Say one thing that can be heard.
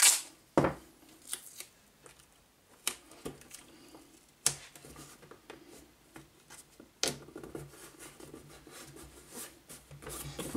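Wooden panels tap and click as hands press them together.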